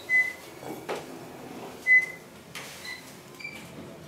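An elevator chimes with short, high beeps.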